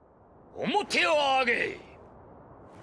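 A middle-aged man shouts sharply, close by.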